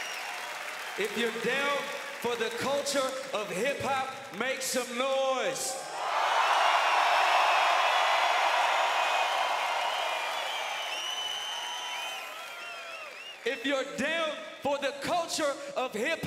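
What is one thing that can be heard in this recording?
A man shouts energetically into a microphone over loudspeakers.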